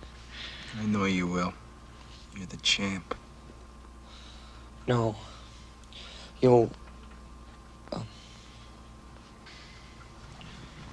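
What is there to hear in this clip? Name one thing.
A young man lying in bed speaks weakly.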